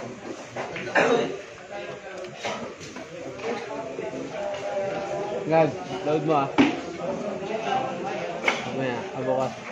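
Pool balls click together sharply.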